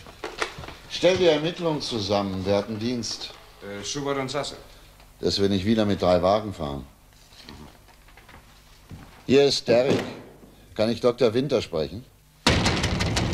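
A middle-aged man speaks calmly on the phone, close by.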